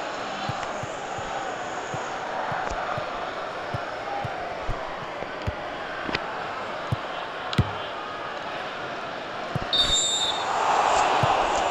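A stadium crowd roars steadily and swells louder near the end.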